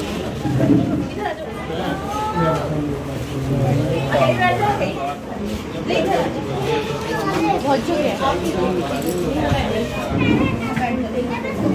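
A crowd of men and women chatter nearby in a small room.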